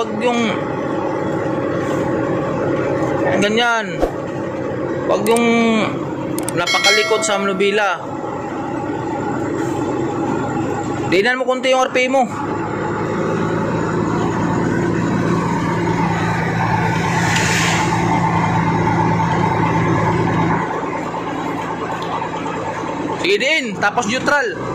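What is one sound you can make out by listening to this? A truck engine rumbles steadily from inside the cab.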